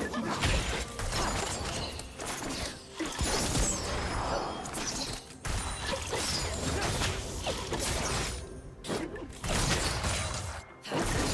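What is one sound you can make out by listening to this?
Weapons strike with sharp hits.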